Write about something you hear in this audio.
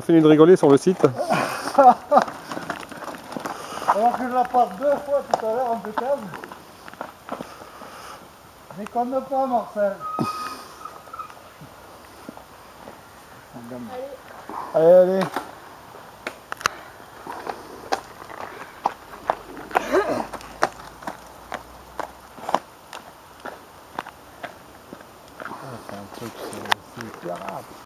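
A bicycle rattles as it is pushed uphill.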